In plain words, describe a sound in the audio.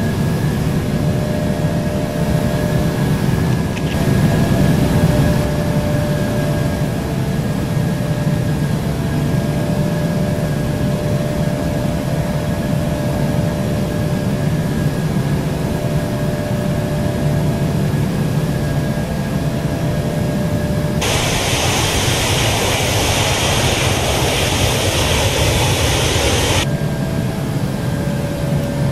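A jet engine hums with a low, steady drone.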